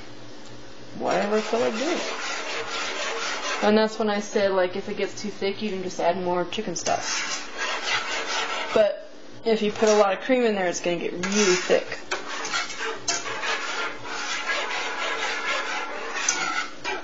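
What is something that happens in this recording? A wire whisk scrapes and swishes against a metal pan.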